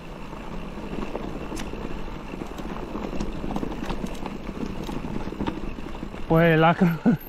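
A mountain bike rolls over a dirt and gravel trail.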